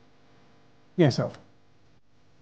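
A young man answers briefly and quietly.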